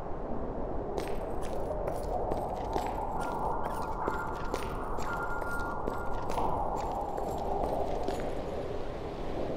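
Footsteps thud on rocky ground.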